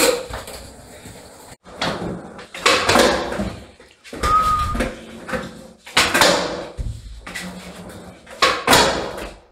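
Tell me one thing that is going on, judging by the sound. A skateboard smacks and clatters on a tiled floor.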